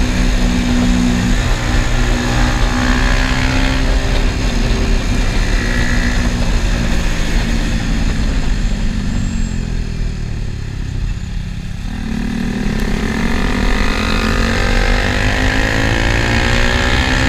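A motorcycle engine roars close by, its pitch sinking and then climbing again.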